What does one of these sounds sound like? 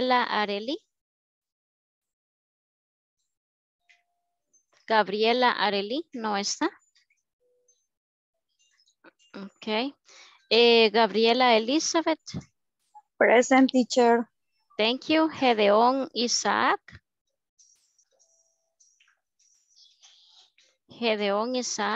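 A woman speaks calmly over an online call, heard in bursts with pauses.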